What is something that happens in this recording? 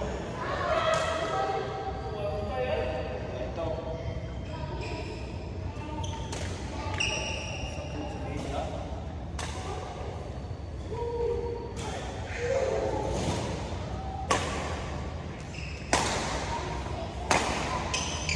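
Badminton rackets smack a shuttlecock back and forth, echoing in a large hall.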